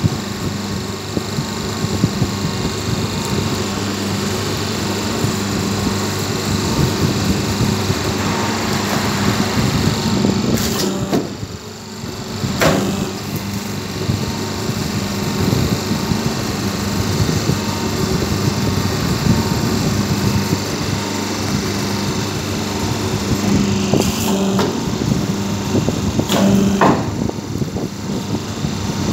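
Paper plates rustle as they are handled.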